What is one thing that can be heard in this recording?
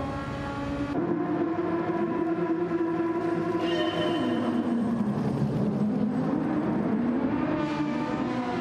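Several racing car engines roar and whine together at high revs.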